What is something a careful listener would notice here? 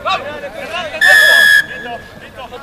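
A referee's whistle blows one sharp blast.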